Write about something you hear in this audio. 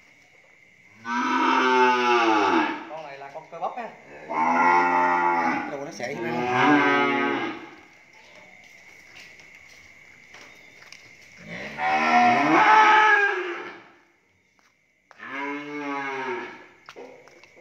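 A cow moos loudly in long, drawn-out calls.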